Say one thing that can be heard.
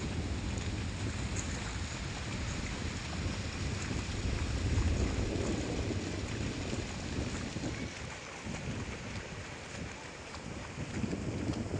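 A horse walks through shallow water, its hooves splashing.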